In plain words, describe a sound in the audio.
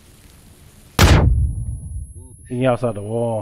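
A loud explosion booms close by and rumbles away.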